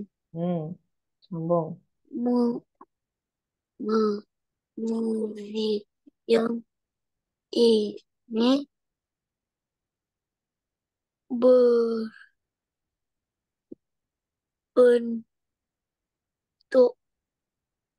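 A woman reads out slowly and clearly over an online call.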